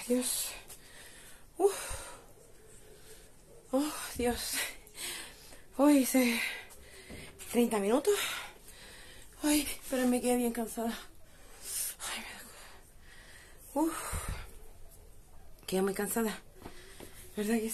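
A young woman talks close by in short, animated bursts.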